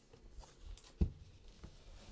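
A cardboard box is set down on a table with a thud.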